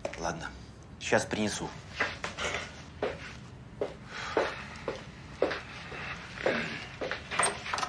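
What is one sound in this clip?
An older man speaks calmly and firmly, close by.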